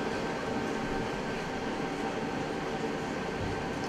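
A piano plays softly in a large hall.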